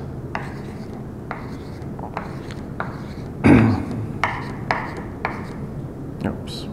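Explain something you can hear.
Chalk taps and scrapes on a blackboard in short strokes.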